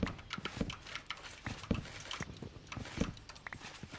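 Quick scraping knocks sound as earth is dug away.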